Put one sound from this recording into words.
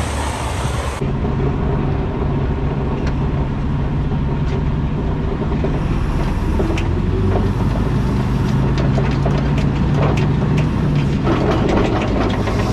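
A flatbed trailer rattles over the road.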